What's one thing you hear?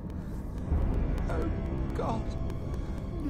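A young woman moans in distress.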